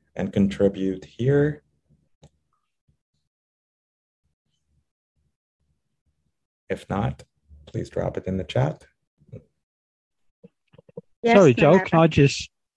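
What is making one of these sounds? A man speaks with animation over an online call, in short bursts with pauses.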